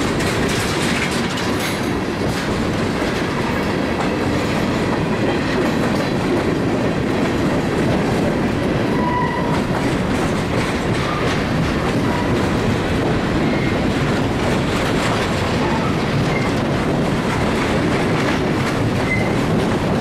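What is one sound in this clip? Wheels squeal and screech on the rails now and then.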